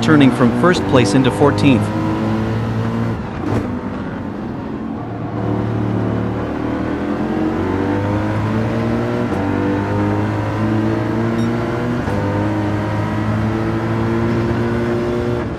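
A racing car engine roars steadily, its pitch rising with each acceleration and dropping as it shifts gears and brakes.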